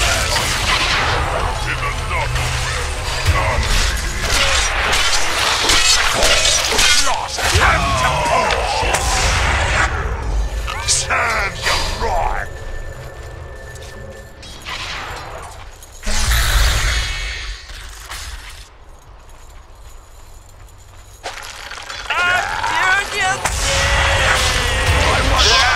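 Magic spells crackle and boom in a fast fight.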